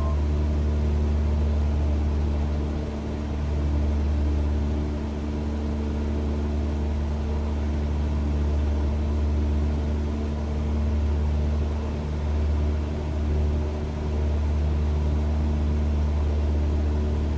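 A light plane's propeller engine drones steadily from inside the cockpit.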